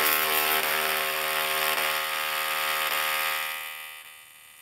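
Electric sparks buzz and crackle loudly with a harsh, steady hum.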